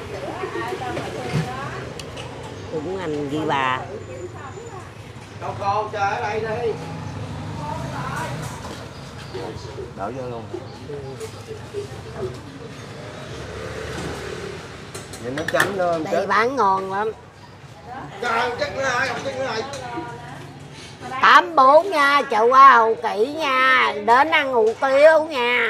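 An elderly woman talks with animation close to a microphone.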